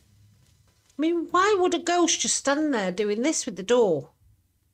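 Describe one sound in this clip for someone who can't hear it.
A middle-aged woman speaks with animation close to a microphone.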